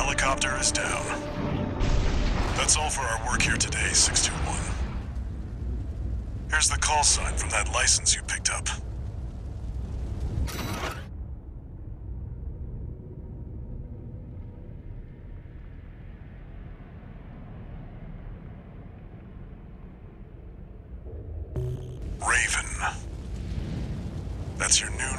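A giant robot walks with heavy, thudding metal footsteps.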